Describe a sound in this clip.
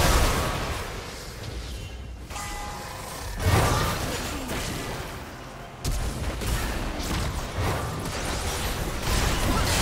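Spell effects whoosh and crackle in a game fight.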